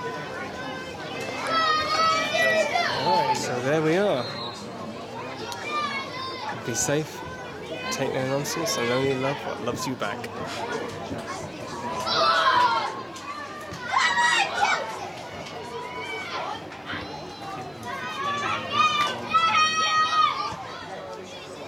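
A crowd of spectators murmurs and calls out from a distance.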